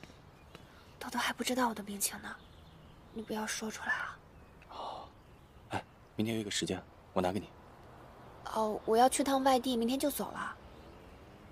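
A young woman speaks quietly and earnestly, close by.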